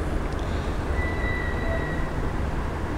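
A digital scale beeps once.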